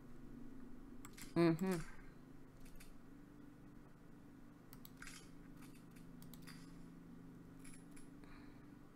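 Soft interface clicks tick as menu items are selected.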